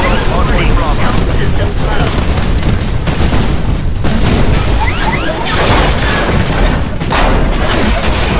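Explosions blast loudly.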